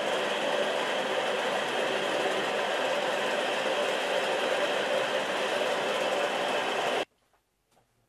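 A motor whirs loudly as a spinning bit grinds into soft stone.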